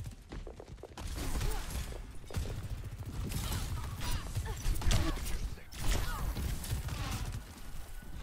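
Gunfire rattles rapidly in bursts.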